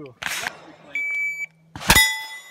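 A shot timer beeps once.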